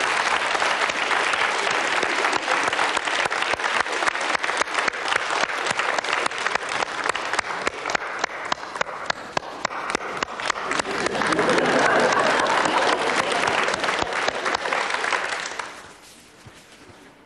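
A large audience applauds loudly in an echoing hall, then the applause fades away.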